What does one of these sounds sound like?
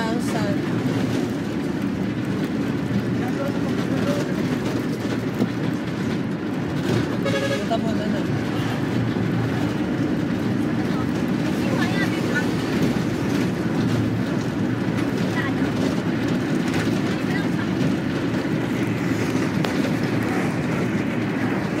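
A bus engine rumbles steadily from inside while driving.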